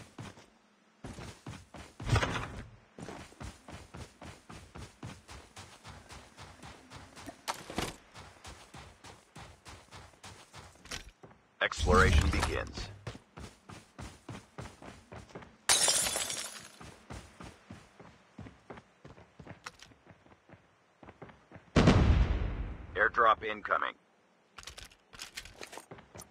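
Footsteps tap quickly and steadily on hard ground.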